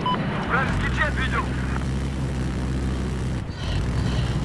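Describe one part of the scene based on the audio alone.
A helicopter's engine drones steadily.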